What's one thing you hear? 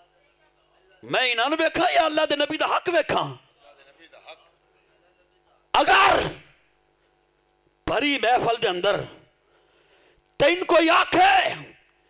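An elderly man speaks forcefully into a microphone in bursts, his voice loud through a loudspeaker.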